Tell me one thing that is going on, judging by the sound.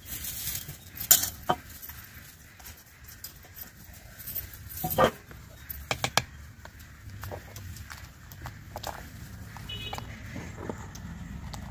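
A metal spoon scrapes and clinks against a bowl.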